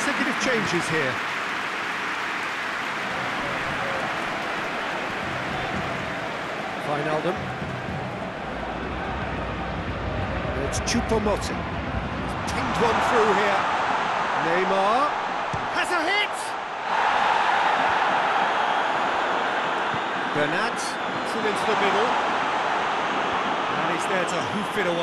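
A stadium crowd roars steadily, swelling at times.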